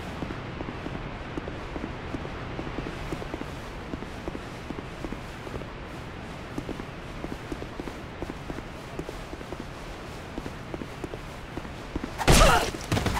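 Footsteps patter quickly over stone.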